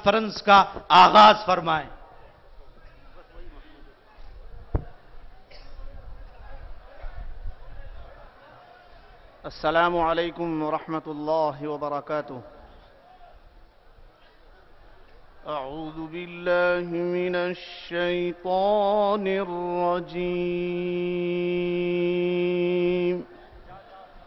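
An elderly man speaks and chants through a loudspeaker in long, drawn-out phrases.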